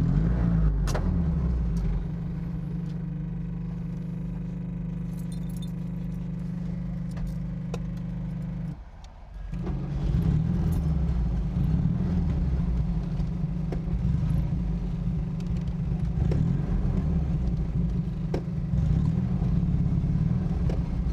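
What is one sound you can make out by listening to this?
A small car engine idles and then revs as the car drives off.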